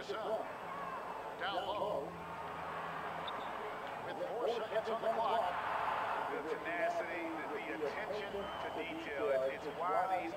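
Sneakers squeak on a basketball court.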